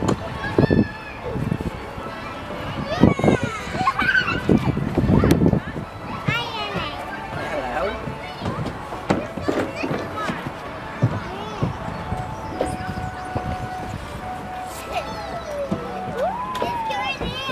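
Young children chatter and squeal nearby.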